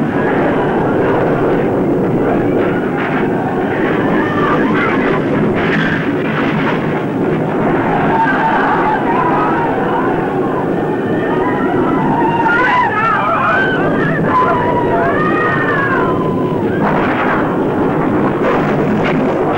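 Bricks and chunks of concrete crash down and clatter.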